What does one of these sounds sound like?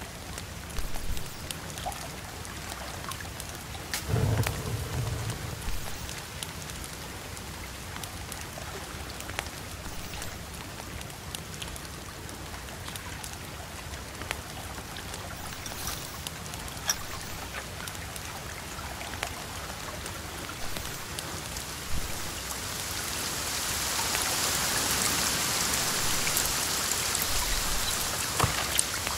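Fire crackles and pops with sharp snaps.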